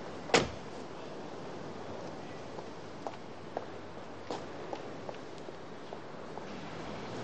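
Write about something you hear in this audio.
Footsteps walk away on pavement.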